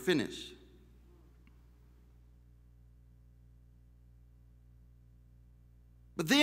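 A man speaks into a microphone, pausing between phrases.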